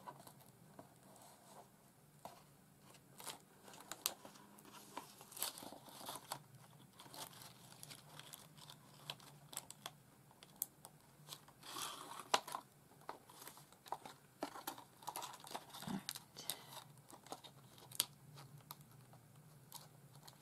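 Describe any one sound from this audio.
Paper rustles and crinkles as hands fold and press it.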